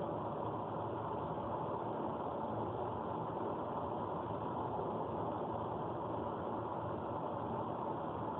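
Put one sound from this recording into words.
Tyres roar steadily on a highway inside a moving car.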